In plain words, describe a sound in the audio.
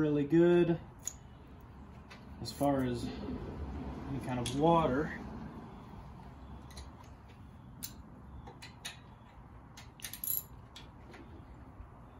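Metal tools clink and tap against an engine.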